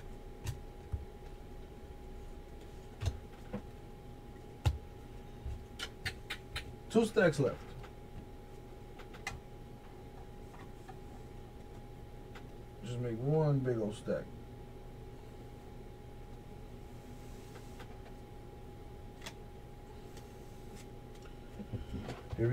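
Trading cards click and rustle as hands shuffle them.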